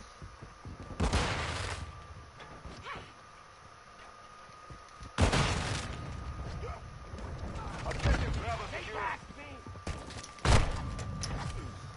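Gunshots crack in short loud bursts with echoing tails.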